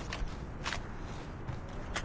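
Footsteps thud on metal stairs.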